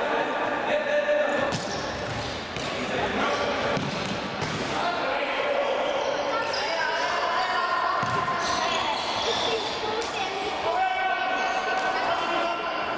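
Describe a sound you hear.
Players' shoes squeak sharply on a hard court in an echoing hall.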